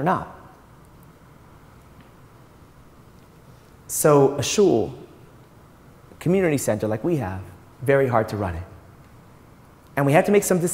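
A man speaks into a microphone in pauses, calmly and with some animation.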